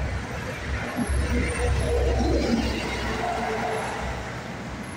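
A heavy truck rumbles past close by.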